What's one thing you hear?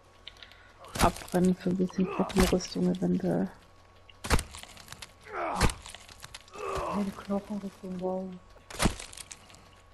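An axe chops into flesh with heavy, wet thuds.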